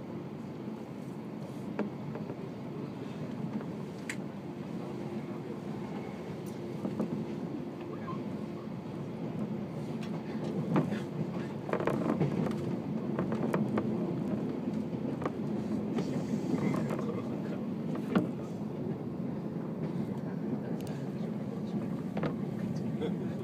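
A train rumbles steadily along the tracks, with occasional rattles and clicks.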